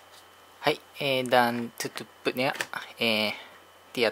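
A plastic lid snaps shut on a jug.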